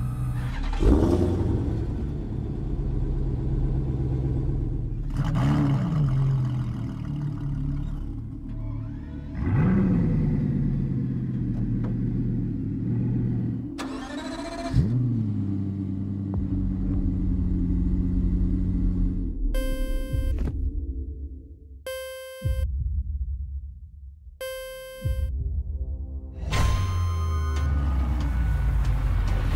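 A sports car engine revs loudly and then rumbles at idle.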